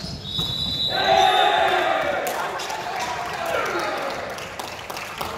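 Young men shout and cheer during the rally.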